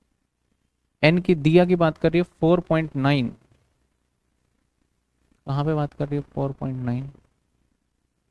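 A man lectures calmly through a close headset microphone.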